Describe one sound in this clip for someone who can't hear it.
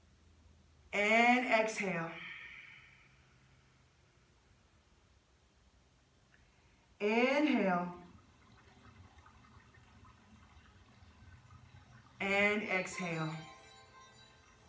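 A woman chants a long, drawn-out tone three times.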